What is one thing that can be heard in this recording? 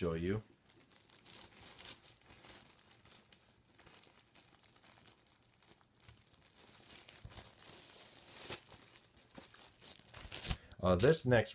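Plastic wrapping crinkles and rustles as it is pulled off.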